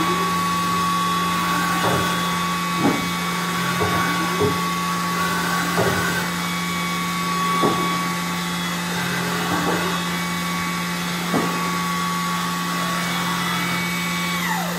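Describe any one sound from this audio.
A machine hums steadily with a high whine.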